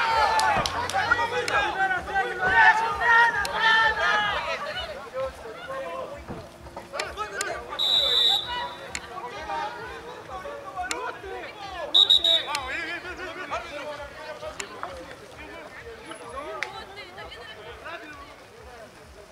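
Young men shout and call out with animation outdoors.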